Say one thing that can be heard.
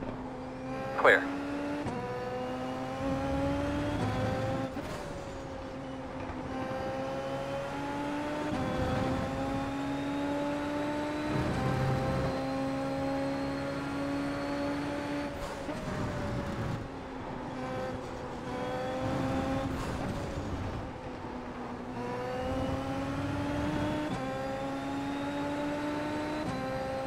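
A racing car engine whines at high pitch, rising through the gears and dropping as it shifts down.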